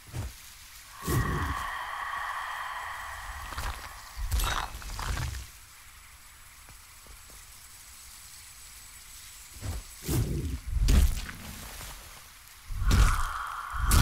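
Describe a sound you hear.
A shimmering magical tone rings out and fades.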